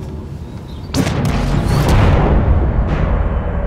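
A spacecraft engine roars loudly with a deep rumble.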